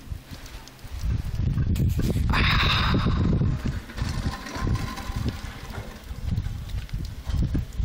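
Wind gusts and rumbles loudly outdoors.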